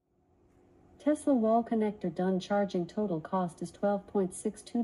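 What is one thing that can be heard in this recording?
A woman's voice speaks calmly through a small loudspeaker.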